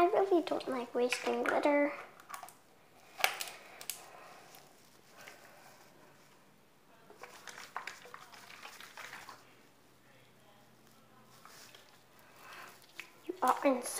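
A plastic bottle crinkles and its cap clicks.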